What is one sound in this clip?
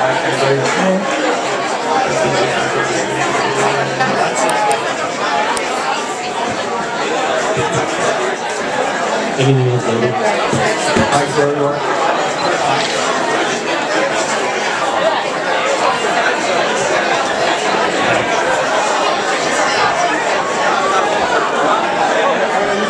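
A young woman sings into a microphone over loud amplified music.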